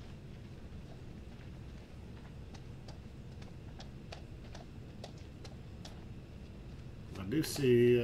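Footsteps tread slowly on pavement.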